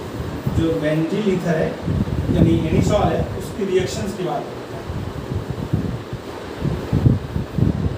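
A cloth rubs against a whiteboard.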